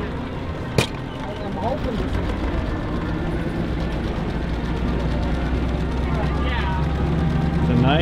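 An engine rumbles low as a vehicle rolls along.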